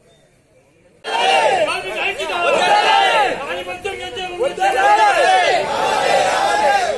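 A crowd of men shouts slogans loudly in unison outdoors.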